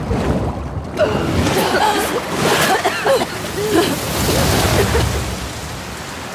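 Heavy rain pours down on the water.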